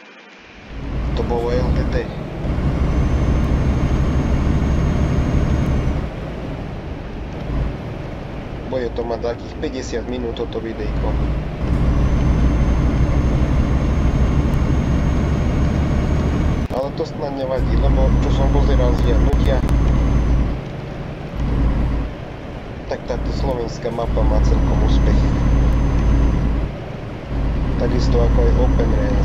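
A truck engine drones, rising and falling as the truck drives.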